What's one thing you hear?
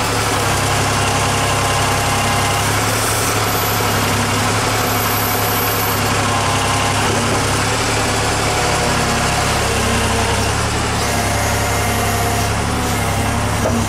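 Hydraulics whine as a digger's arm moves.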